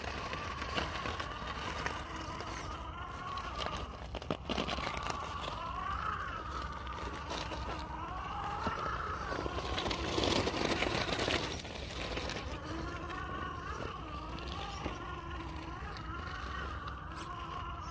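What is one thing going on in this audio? A small electric motor whines, rising and falling in pitch as it strains.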